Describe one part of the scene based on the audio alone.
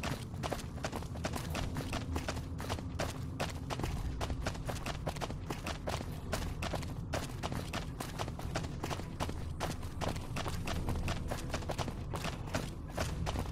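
Footsteps tap steadily on concrete.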